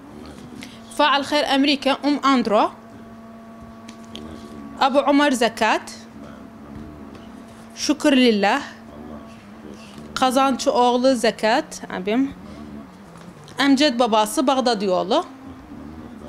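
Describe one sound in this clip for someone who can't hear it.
A young woman speaks calmly into a microphone, in short phrases with pauses.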